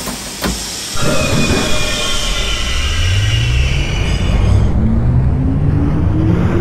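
A train's electric motors whine, rising in pitch as the train speeds up.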